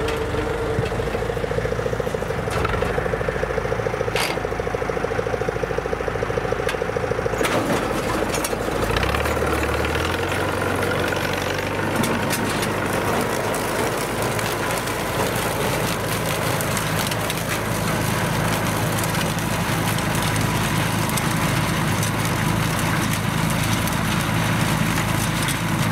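A harvesting machine clatters and rattles as it lifts crops from the soil.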